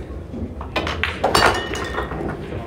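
A cue strikes a pool ball, and the balls clack together sharply.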